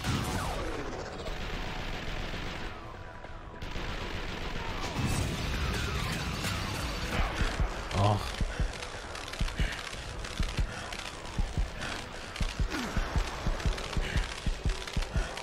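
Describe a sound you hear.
Gunfire rattles in quick, loud bursts.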